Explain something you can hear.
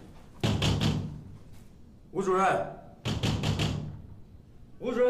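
A man knocks and rattles a metal gate.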